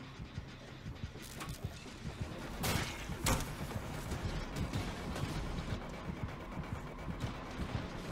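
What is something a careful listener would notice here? Quick footsteps thud along as someone runs.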